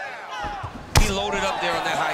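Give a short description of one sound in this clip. A kick lands on a body with a thud.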